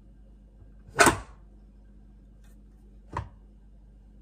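A finger taps on a metal pot lid.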